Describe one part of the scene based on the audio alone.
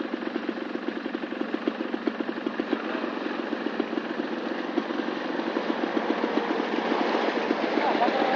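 Tyres squelch through deep mud.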